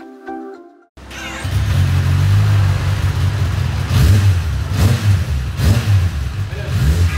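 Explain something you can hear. A motorcycle engine idles loudly with a deep, throaty rumble.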